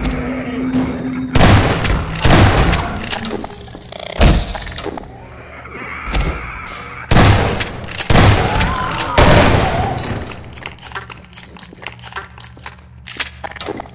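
Zombies groan and moan nearby.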